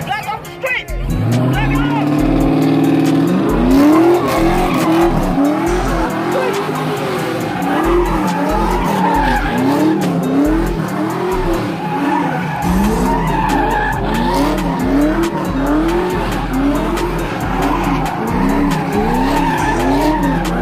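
A car engine revs hard, rising and falling again and again.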